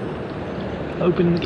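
A short chime sounds from a game menu.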